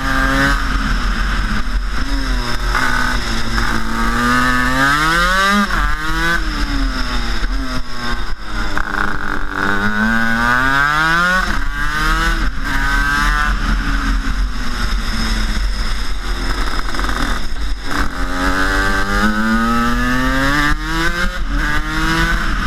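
A kart engine whines loudly close by, its pitch rising and falling as it speeds up and slows down.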